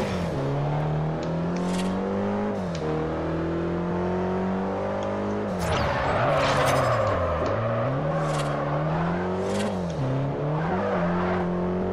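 A car engine roars and revs up and down, shifting gears.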